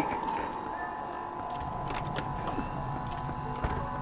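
A heavy door creaks open.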